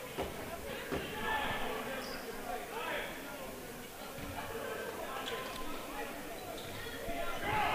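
A small crowd murmurs in a large echoing gym.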